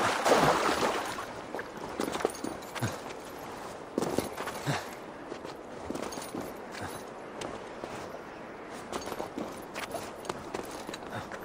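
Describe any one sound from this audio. Hands and boots scrape and thud against stone while climbing.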